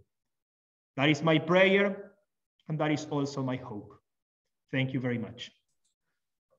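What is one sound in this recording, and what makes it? A man speaks calmly into a microphone, heard as if over an online call.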